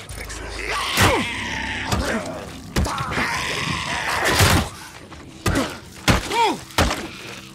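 A creature snarls and screeches up close.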